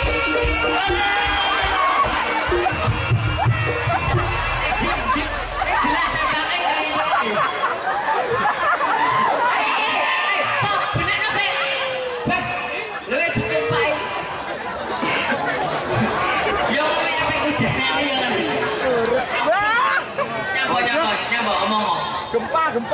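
A large outdoor crowd chatters and calls out loudly all around.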